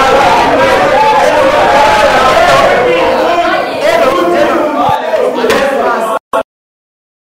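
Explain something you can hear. A room full of teenagers chatters at once.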